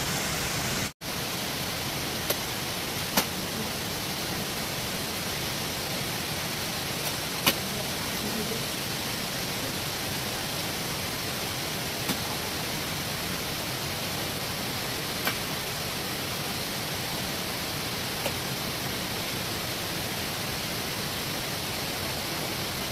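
Hands press and pat wet mud.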